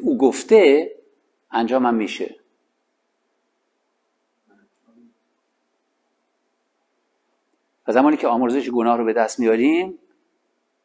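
A man reads aloud in bursts, with pauses, heard close up.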